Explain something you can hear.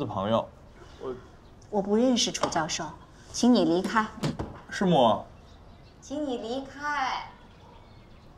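An older woman answers from behind a closed door.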